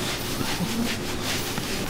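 A towel rubs softly against wet fur.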